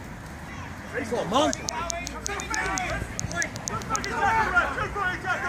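Adult men shout to each other outdoors.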